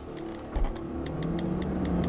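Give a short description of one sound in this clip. A car drives along a road, its tyres rolling on the pavement.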